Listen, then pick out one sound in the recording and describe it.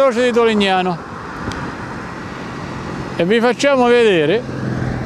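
A car drives along a road with a steady hum of tyres.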